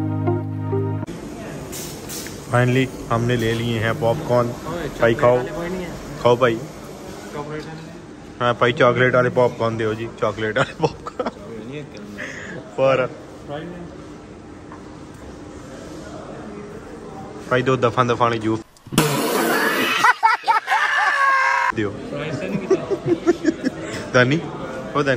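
Several men chatter in a crowd nearby.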